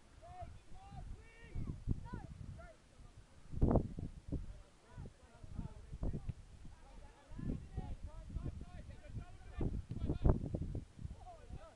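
Men shout to each other outdoors in the distance.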